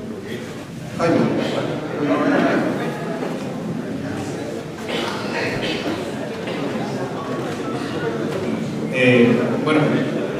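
Several men murmur and talk over one another nearby.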